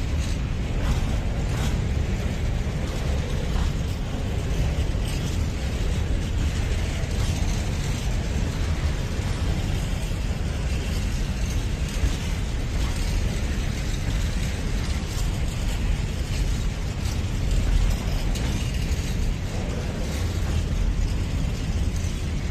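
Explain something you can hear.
Train wheels clatter and clack over rail joints.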